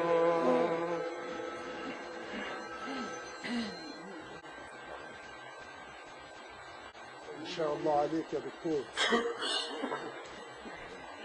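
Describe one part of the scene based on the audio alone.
An elderly man chants in a long, wavering voice through a microphone and loudspeakers.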